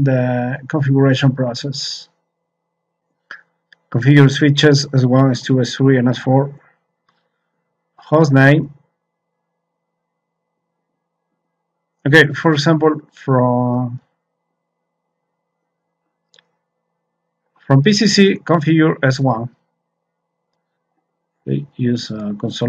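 A man explains calmly, close to a microphone, in short bursts with pauses.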